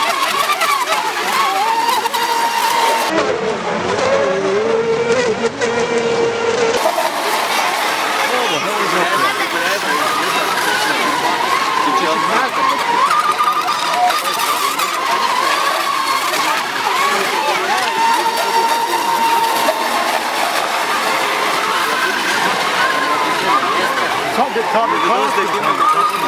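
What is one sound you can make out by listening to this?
Small model boat engines whine at high pitch as the boats race across water.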